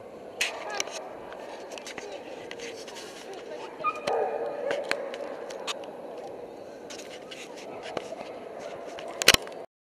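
A crowd murmurs throughout a large echoing hall.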